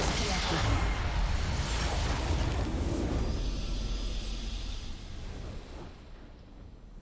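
A deep rumbling blast from a video game booms and slowly fades.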